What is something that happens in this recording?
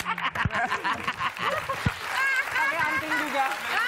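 A woman laughs heartily nearby.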